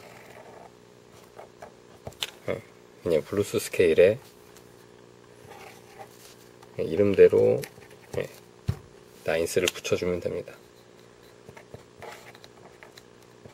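A felt-tip pen scratches on paper.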